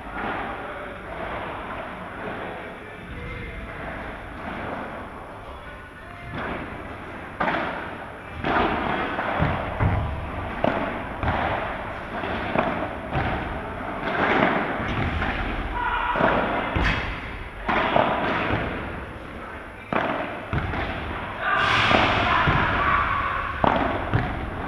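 Paddle rackets strike a ball with sharp pops in a large echoing hall.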